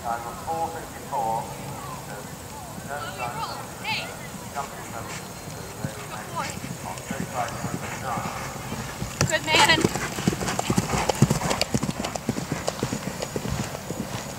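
A horse gallops on grass with heavy, rhythmic hoofbeats.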